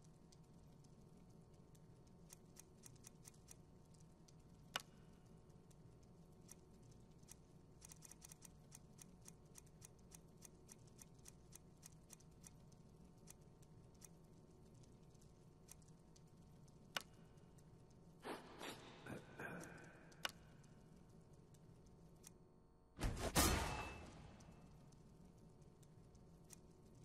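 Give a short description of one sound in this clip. Soft menu ticks click quickly, again and again.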